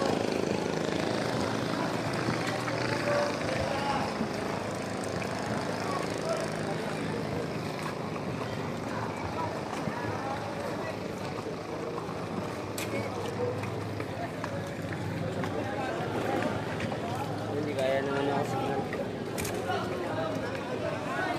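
A crowd of men chatters nearby outdoors.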